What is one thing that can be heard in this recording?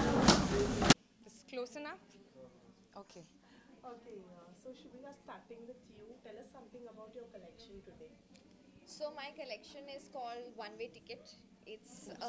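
A young woman speaks calmly into microphones.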